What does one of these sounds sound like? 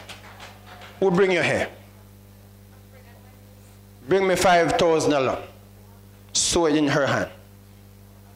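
A man speaks in short bursts.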